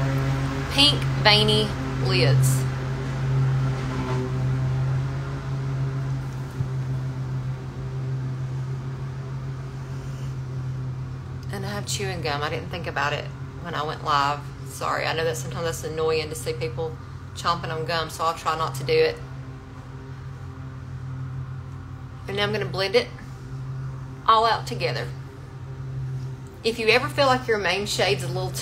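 A young woman talks calmly and close up.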